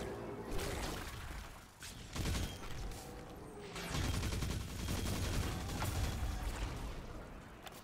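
Energy blasts burst and crackle.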